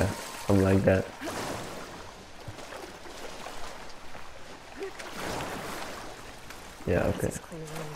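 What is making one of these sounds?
Water splashes as someone wades through it.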